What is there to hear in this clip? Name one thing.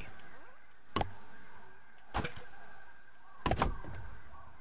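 Soft building thuds sound as pieces snap into place in a game.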